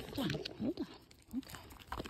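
A deer crunches and chews on dried corn.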